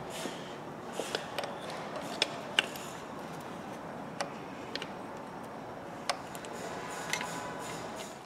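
Metal parts clink and tap lightly.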